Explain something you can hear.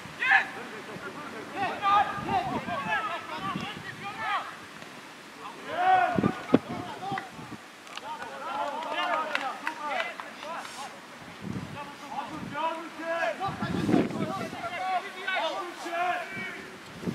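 Men call out to each other on an outdoor football pitch.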